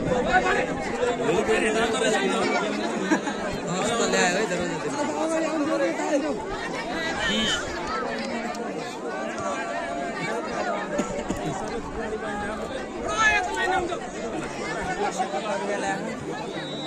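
A large outdoor crowd chatters and shouts.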